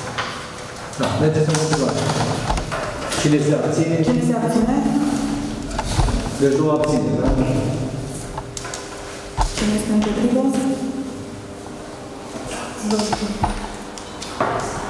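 A man speaks calmly in a room with some echo.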